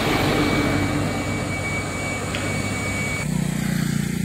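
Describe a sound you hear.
A truck engine rumbles as a truck drives away.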